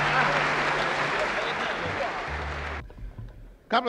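An audience applauds loudly in a large hall.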